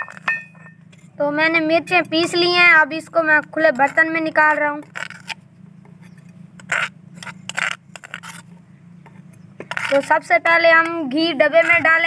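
A metal spoon scrapes against a clay bowl.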